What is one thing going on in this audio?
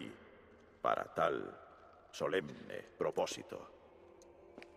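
A man speaks calmly and gravely, close by.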